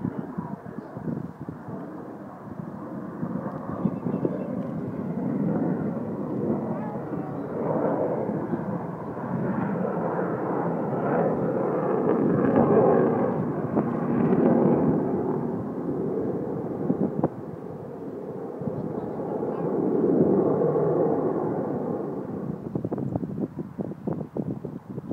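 A jet plane roars in the sky, its noise swelling and fading.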